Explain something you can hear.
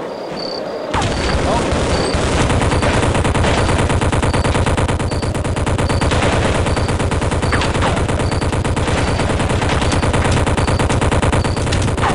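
A mounted machine gun fires in rapid, steady bursts.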